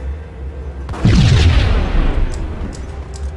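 A pistol fires a single loud shot that echoes.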